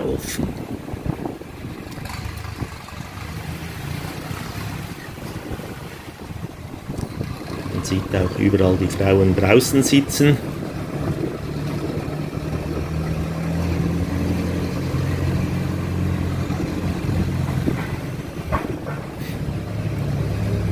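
A motorbike engine hums steadily while riding slowly.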